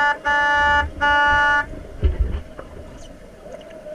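Bubbles gurgle and rush underwater.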